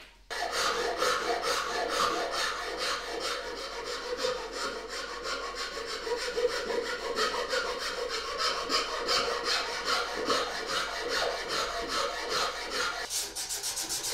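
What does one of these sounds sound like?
A metal file rasps back and forth along a wooden edge.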